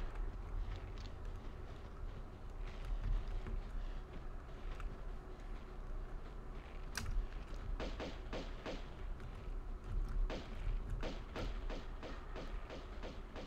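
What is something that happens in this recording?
Pistols fire in rapid bursts.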